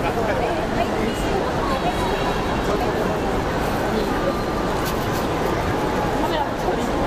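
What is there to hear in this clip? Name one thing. A huge crowd cheers and chatters loudly in a large echoing stadium.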